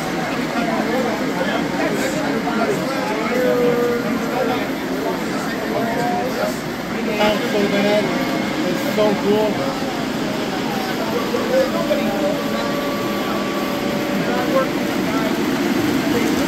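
Several men chat and laugh nearby.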